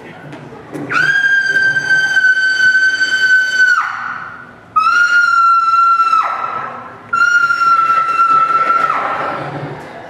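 A woman sings long, high held notes that carry through a large hall.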